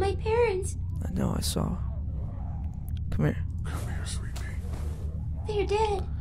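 A man speaks weakly in a low, strained voice.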